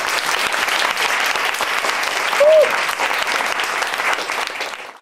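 Two acoustic guitars play live.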